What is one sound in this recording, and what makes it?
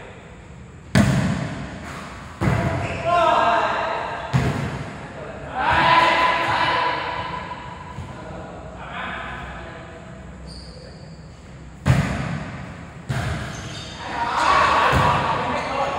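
A volleyball thumps against hands as players hit it.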